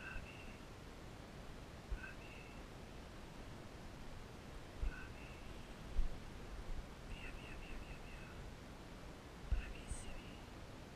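Wind buffets outdoors in gusts.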